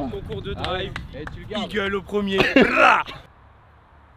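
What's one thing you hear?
A young man talks loudly and with animation close by.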